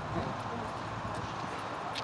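Footsteps walk along a pavement outdoors.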